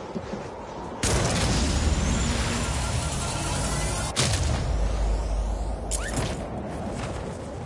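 A loud whooshing blast goes off as a device launches upward.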